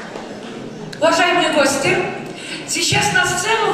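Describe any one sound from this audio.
A woman sings into a microphone, heard through loudspeakers in a large hall.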